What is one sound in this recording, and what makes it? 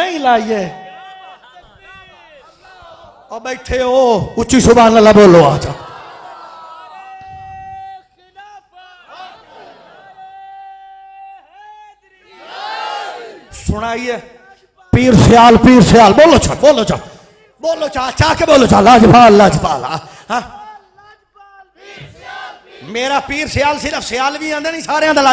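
A crowd of men chants and shouts loudly together in bursts.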